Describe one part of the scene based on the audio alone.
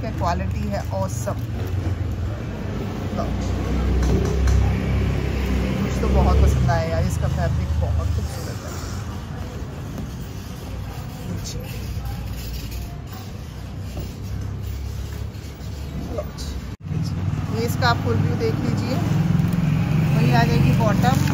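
Fabric rustles as it is unfolded and spread out.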